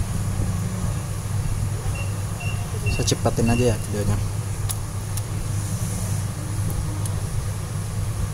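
A screwdriver turns small screws with faint clicks.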